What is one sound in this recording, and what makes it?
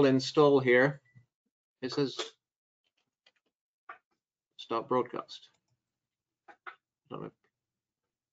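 A middle-aged man speaks calmly into a microphone, in short phrases with pauses.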